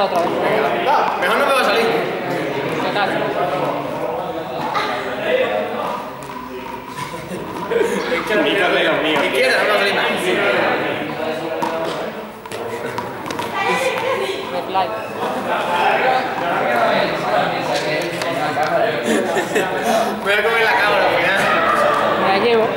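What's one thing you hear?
A young man talks calmly in an echoing hall.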